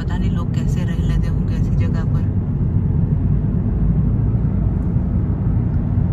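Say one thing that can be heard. A car engine hums steadily with a low road rumble, heard from inside the car.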